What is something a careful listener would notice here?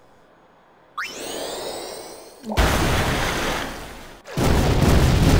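A magic water spell whooshes and splashes.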